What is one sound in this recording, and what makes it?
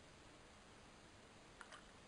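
Milk pours into a mug.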